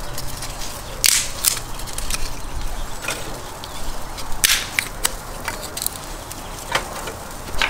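Pieces of wood clatter into a firebox.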